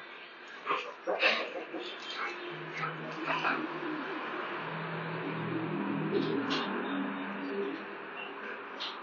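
Dogs growl and snarl as they play roughly.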